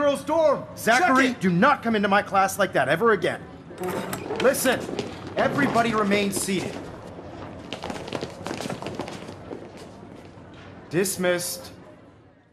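A man speaks sternly and loudly.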